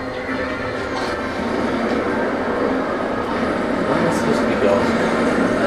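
A small aircraft's engine hums steadily.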